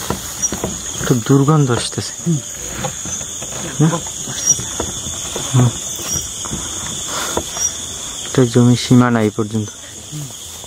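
A young man speaks in a low voice nearby.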